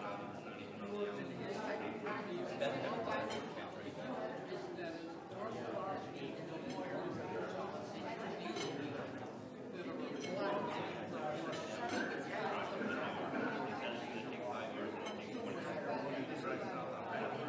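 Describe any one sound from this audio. An audience murmurs and chatters in a large echoing room.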